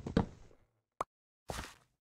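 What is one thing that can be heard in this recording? An item pops.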